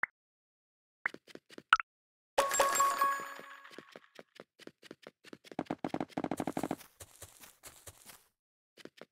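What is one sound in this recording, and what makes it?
Quick game footsteps patter along.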